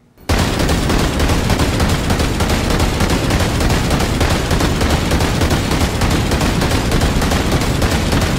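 Shells explode with loud booms.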